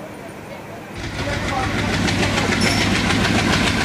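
A train rumbles and clatters as it rolls along.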